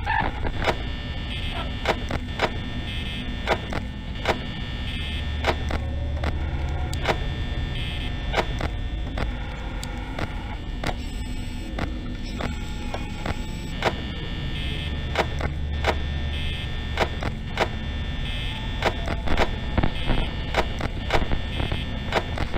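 A desk fan whirs steadily.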